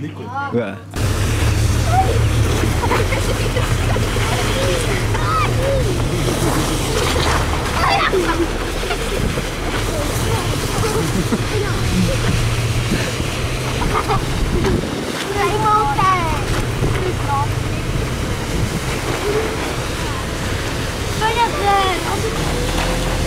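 Children shout and laugh outdoors.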